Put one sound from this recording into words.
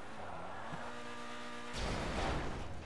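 A car engine revs.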